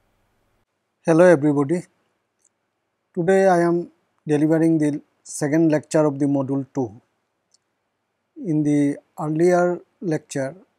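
A middle-aged man speaks calmly and clearly into a close microphone, with short pauses.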